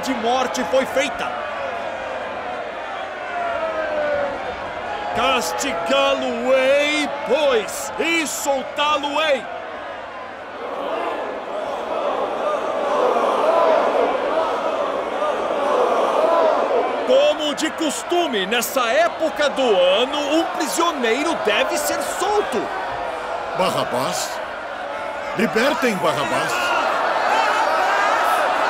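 A man addresses a crowd loudly from a balcony, his voice carrying outdoors.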